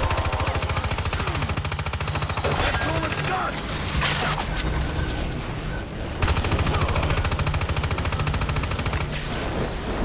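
A rapid-fire gun shoots in fast, steady bursts.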